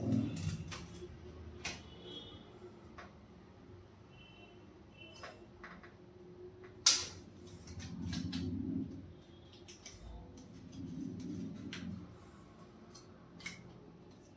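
Small metal tools click and tap against a laptop's parts.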